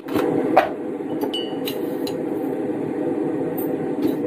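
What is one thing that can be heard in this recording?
A lid twists and scrapes on a jar.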